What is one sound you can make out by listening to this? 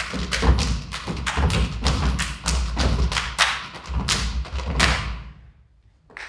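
A group of performers beats out a quick rhythm with hand claps and body slaps.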